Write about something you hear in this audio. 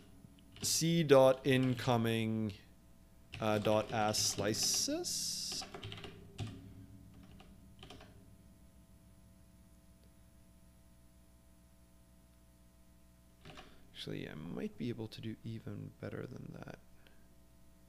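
A man talks calmly into a close microphone, with pauses.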